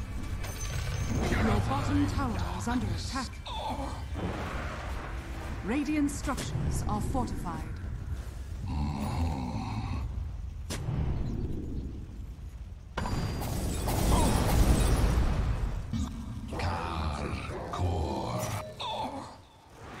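Sword clashes and hits ring out during a game fight.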